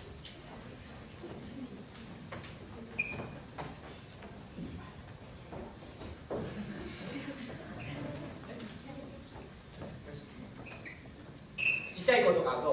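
Young people murmur and chatter quietly on stage.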